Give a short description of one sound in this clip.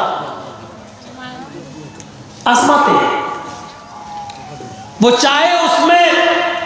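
A man preaches loudly and passionately through loudspeakers, with echo.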